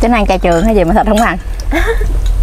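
A woman speaks animatedly up close.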